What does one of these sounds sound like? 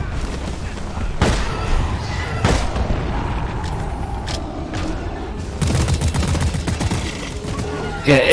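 A rapid gun fires in bursts.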